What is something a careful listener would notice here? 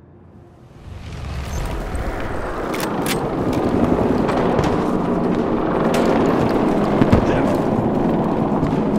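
Heavy footsteps crunch and clatter on metal floors.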